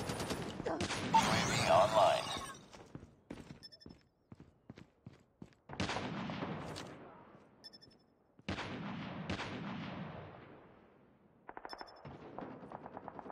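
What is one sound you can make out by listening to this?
A rifle fires short bursts of shots that echo loudly.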